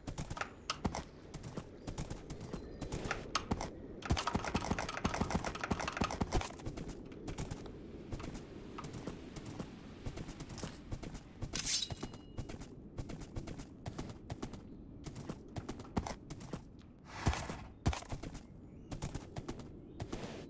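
A horse's hooves clop rapidly at a gallop.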